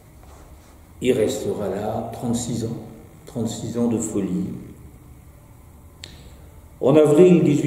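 An older man speaks calmly and close to a microphone, pausing between phrases.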